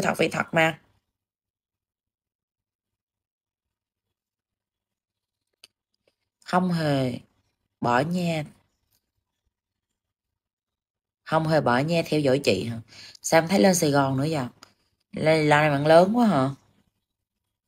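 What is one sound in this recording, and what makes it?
A woman speaks emotionally in short bursts, heard through an online call.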